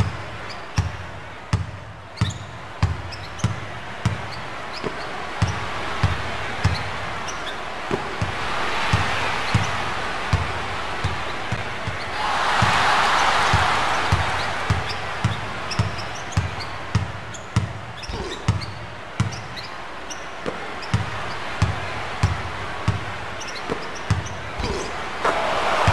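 An arena crowd roars and swells.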